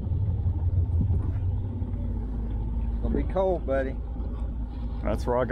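A boat motor hums steadily at a low pitch.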